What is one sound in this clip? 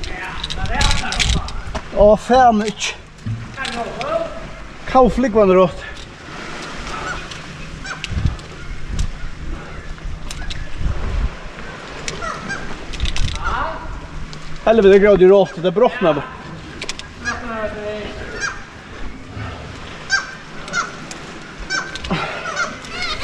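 Water laps gently against rock.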